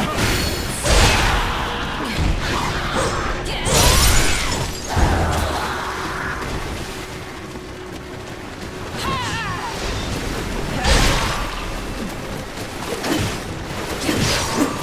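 Weapons clash and strike with heavy impacts in a fight.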